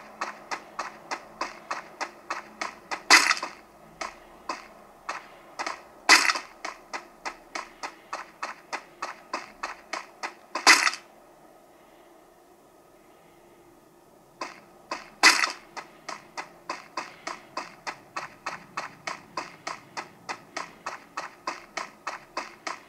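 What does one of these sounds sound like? Running footsteps sound from a mobile game.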